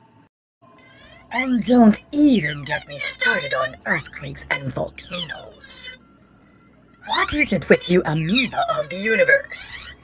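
A voice speaks with animation.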